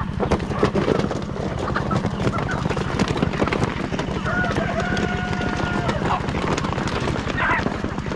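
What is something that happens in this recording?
Chickens peck at grain on the ground.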